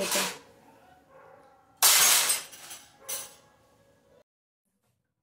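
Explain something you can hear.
A metal rack rattles and clatters.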